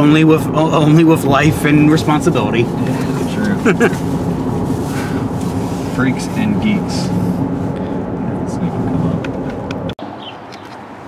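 A young man talks and laughs close by.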